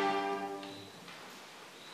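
A string trio plays a final chord that rings out and fades.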